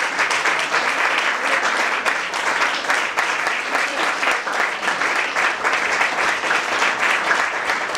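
An audience applauds warmly, clapping steadily in an echoing hall.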